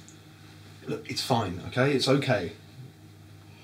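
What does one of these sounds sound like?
A man speaks calmly indoors nearby.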